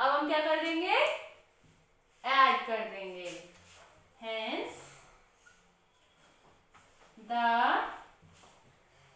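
A young woman speaks clearly and slowly nearby, explaining in short phrases.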